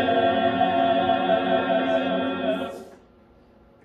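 A small group of people sings a hymn together in an echoing room.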